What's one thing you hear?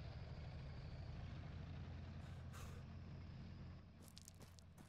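Tank engines rumble low and steady nearby.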